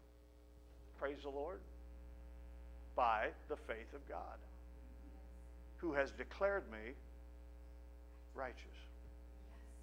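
A middle-aged man speaks with animation through a microphone, pausing between short phrases.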